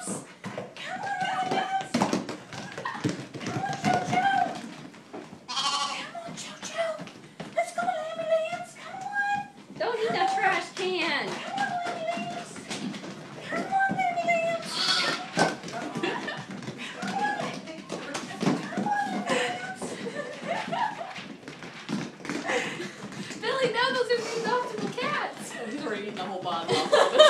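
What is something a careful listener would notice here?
Lambs bleat repeatedly, close by.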